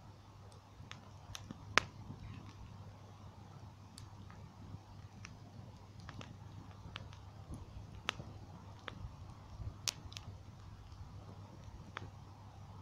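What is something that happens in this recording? A bonfire crackles and pops.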